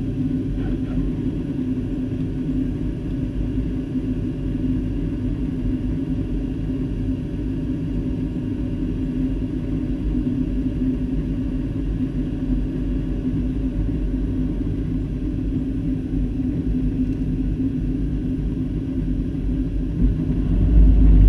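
A jet engine roars steadily inside an airliner cabin in flight.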